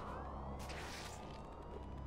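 A web line zips out and swings with a whoosh.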